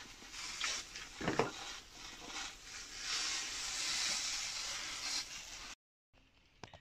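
A hand-pump spray bottle hisses as it sprays a fine mist.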